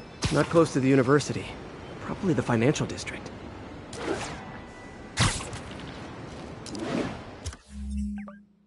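Air rushes past in loud whooshes as a figure swings through the air.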